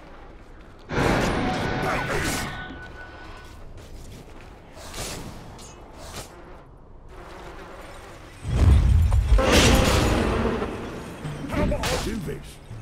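Game spells and blows crash and whoosh in bursts during a fight.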